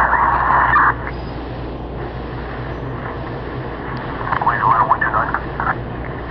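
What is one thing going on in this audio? A train rolls past, its wheels rumbling and clattering on the rails.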